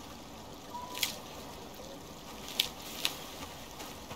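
Leafy plant stalks rustle and snap as they are pulled up.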